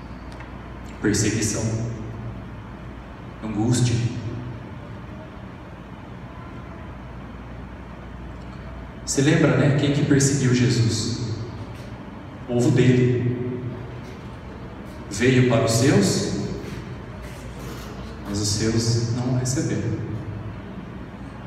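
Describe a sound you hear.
A man speaks calmly into a microphone in short phrases with pauses, heard through a loudspeaker in an echoing hall.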